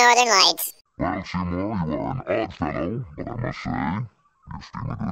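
An older man speaks in a flat, deadpan voice.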